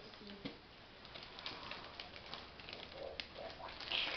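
Wrapping paper rustles and crinkles.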